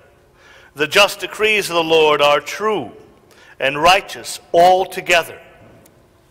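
A man chants in a sung voice through a microphone in a large echoing hall.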